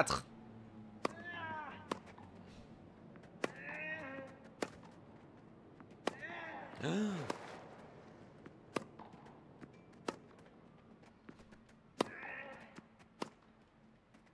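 A tennis ball is struck sharply back and forth.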